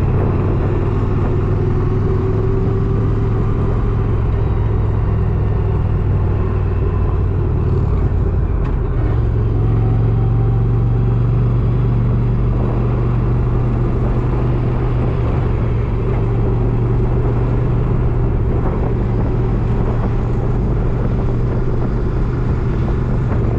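Fabric rustles and rubs close against the microphone.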